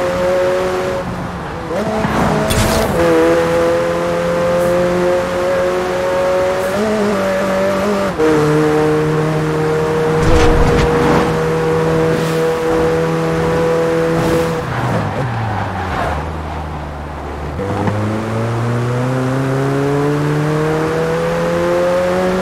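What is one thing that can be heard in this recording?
A sports car engine roars steadily, dropping in pitch at gear changes and revving up again.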